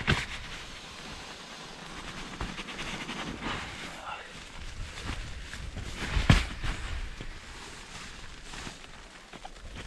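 Air rushes in bursts as a pump sack inflates a mattress.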